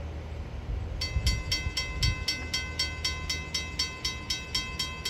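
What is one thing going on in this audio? A railway crossing bell rings rapidly and steadily.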